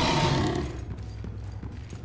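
A blade slashes into a creature with a heavy hit.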